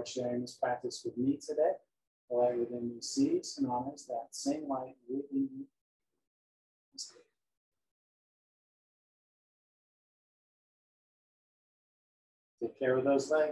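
A middle-aged man speaks calmly and slowly, close to the microphone.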